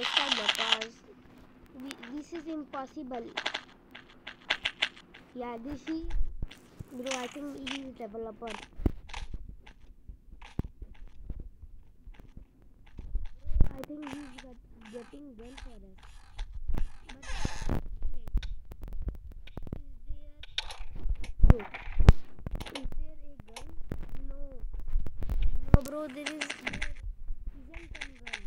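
Short game clicks and knocks sound as blocks are placed and broken.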